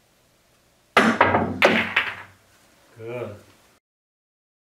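Pool balls knock together.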